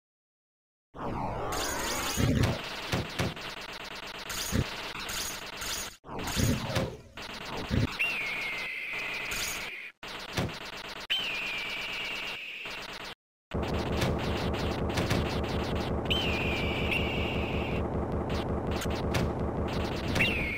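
Electronic game music plays.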